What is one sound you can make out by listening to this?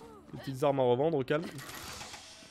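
A young man exclaims loudly into a close microphone.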